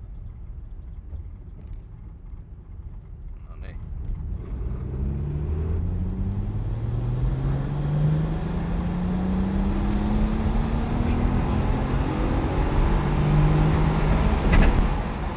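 Tyres rumble and crunch over a gravel road.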